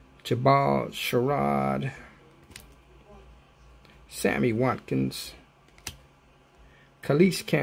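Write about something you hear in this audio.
Trading cards slide and rustle against each other in hands.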